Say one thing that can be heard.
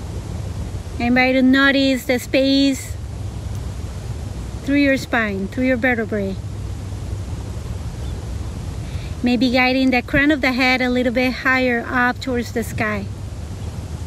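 A young woman speaks calmly and slowly, close by.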